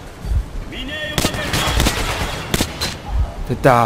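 A rifle fires several sharp gunshots.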